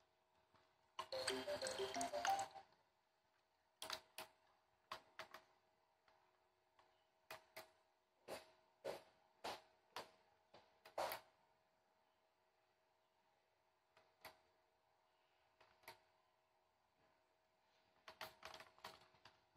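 Plastic buttons click sharply, one press at a time.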